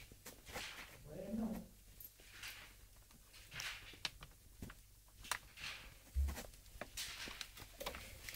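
Kittens scratch and rustle close by.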